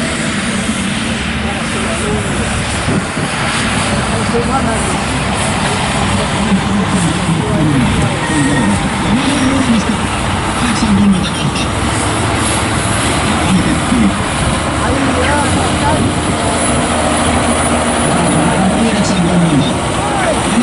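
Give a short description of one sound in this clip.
A tractor engine roars loudly and strains under load.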